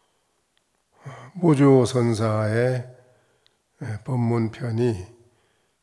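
An elderly man chants slowly in a drawn-out voice through a microphone.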